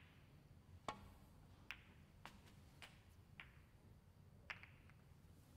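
Snooker balls click sharply against each other.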